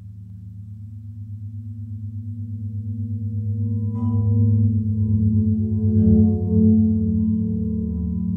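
A spinning turntable hums with a low, pulsing drone that slowly grows louder.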